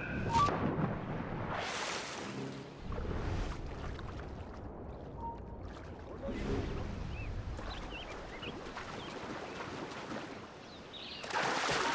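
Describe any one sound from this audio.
Water sloshes as a swimmer paddles steadily.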